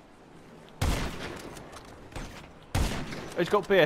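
A rifle fires sharp, echoing shots.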